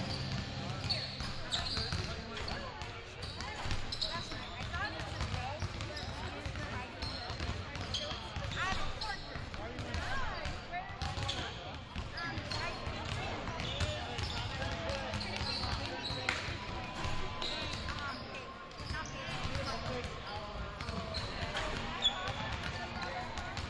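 Young players call out and chatter in the distance.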